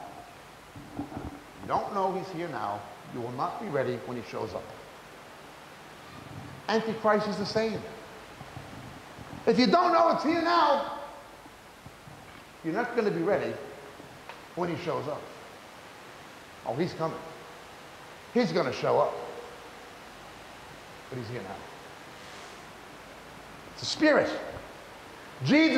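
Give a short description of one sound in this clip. A man speaks slowly and deliberately through a microphone, with pauses.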